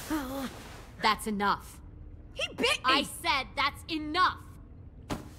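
A woman speaks firmly and sternly.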